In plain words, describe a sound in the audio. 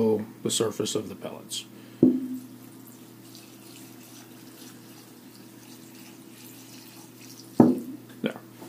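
Liquid trickles softly into a container of pellets.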